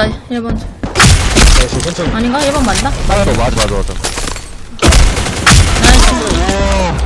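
Gunshots bang in short bursts.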